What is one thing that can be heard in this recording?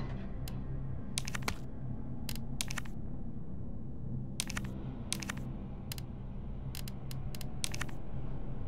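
Soft electronic menu ticks click quickly as a selection moves through a list.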